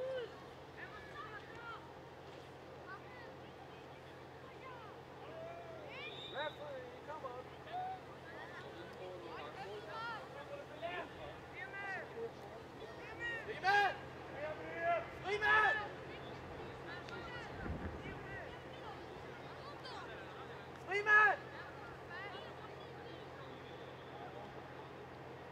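Young men shout to each other at a distance across an open outdoor field.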